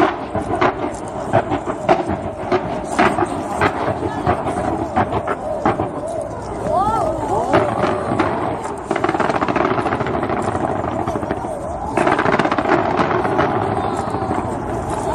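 Fireworks burst and crackle loudly in rapid succession.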